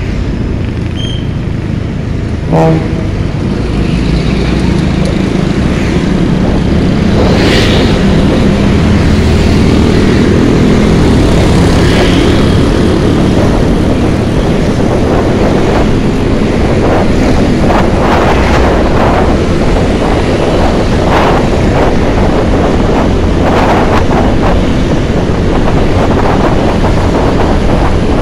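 Wind rushes loudly past a moving rider.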